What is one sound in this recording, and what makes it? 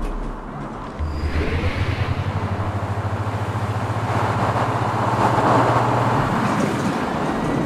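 A chain lift hums and clatters steadily as a roller coaster climbs.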